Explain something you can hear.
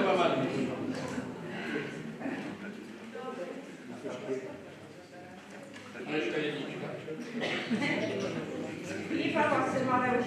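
An elderly man speaks with animation, heard through a loudspeaker in a large echoing hall.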